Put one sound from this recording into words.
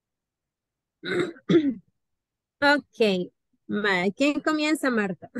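A young woman speaks over an online call.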